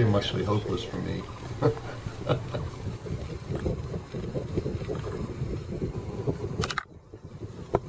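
An elderly man talks calmly through a microphone.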